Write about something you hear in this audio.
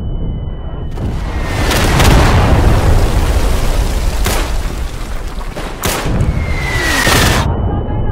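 Explosions boom close by.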